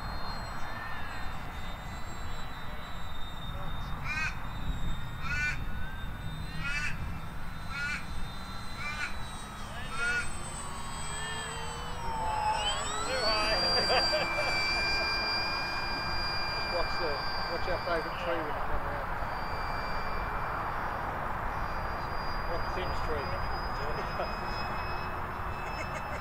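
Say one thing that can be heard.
A small propeller plane drones overhead, its engine pitch swelling and falling as it passes.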